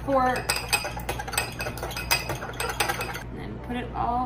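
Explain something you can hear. A fork whisks quickly against a small glass, clinking rapidly.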